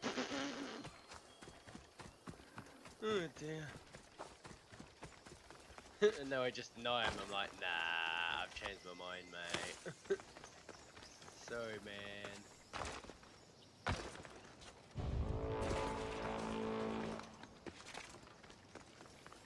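Footsteps crunch on dry ground and gravel.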